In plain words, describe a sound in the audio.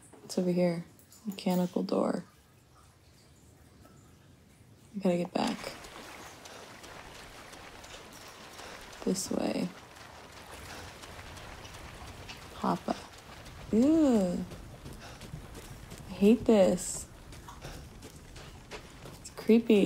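A young woman talks with animation into a close microphone, in short bursts with pauses.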